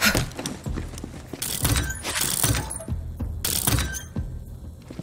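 A metal locker door clanks open.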